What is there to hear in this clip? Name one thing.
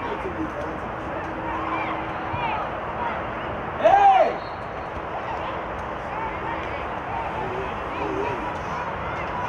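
Young women players shout and call out to each other across an open pitch.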